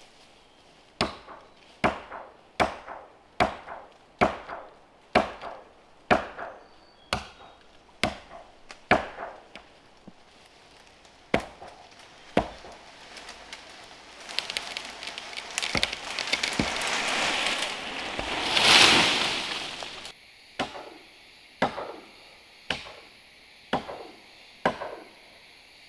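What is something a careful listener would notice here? An axe chops into a tree trunk in steady, sharp blows.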